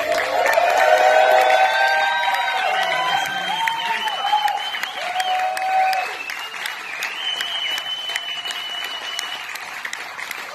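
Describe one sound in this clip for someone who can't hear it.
A fiddle plays a high, sliding melody.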